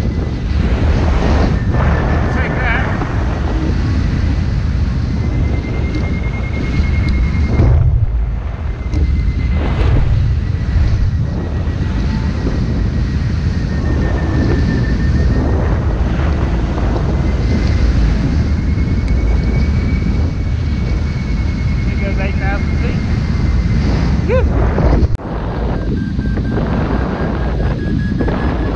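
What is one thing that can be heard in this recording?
Strong wind roars and buffets loudly and steadily.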